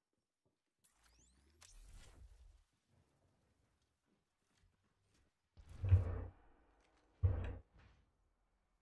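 A crackling energy effect whooshes.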